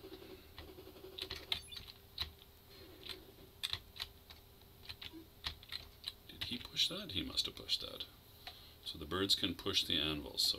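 Electronic video game bleeps and chirps sound in quick bursts.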